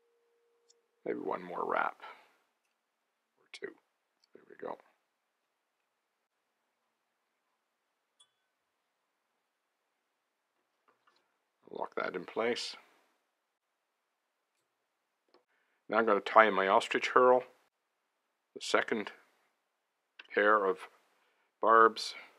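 An elderly man speaks calmly, close to a microphone, in short phrases with pauses.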